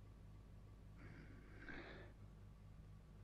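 A deep-voiced man murmurs quietly.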